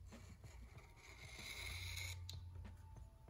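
A marker squeaks and scratches across metal.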